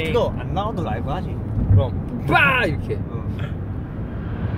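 A young man speaks and laughs close by.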